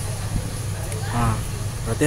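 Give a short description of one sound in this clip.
A finger taps on a phone's glass.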